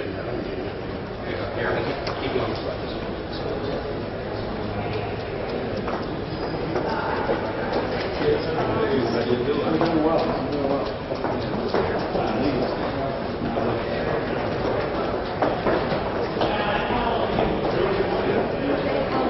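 Several men and women talk at once, close by, in an echoing hallway.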